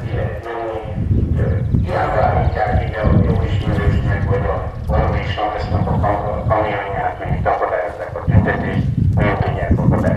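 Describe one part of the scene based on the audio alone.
A crowd of adults murmurs and talks outdoors.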